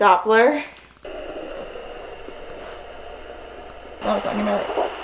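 A fetal heart monitor hisses with static through its speaker.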